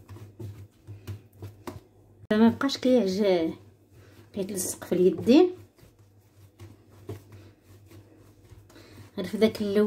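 Hands knead and press soft dough with quiet, dull thumps.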